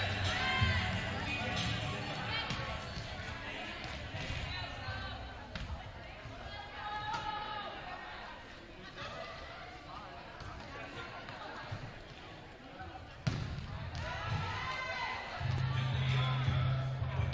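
Young women's voices chatter and call out in a large echoing gym.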